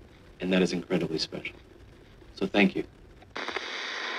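A middle-aged man speaks calmly in a slightly muffled, old recording.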